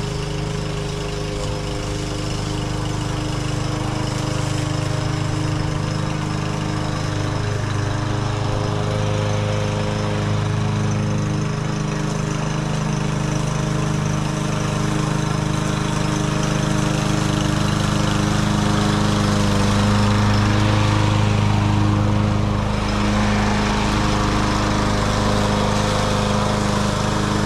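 A lawn mower engine drones steadily, growing louder as it comes near.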